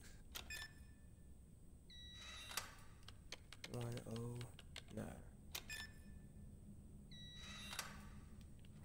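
Keypad buttons click and beep as a code is entered.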